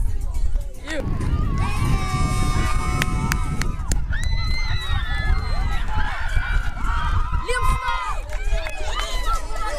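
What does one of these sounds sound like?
A crowd of children cheers and shouts.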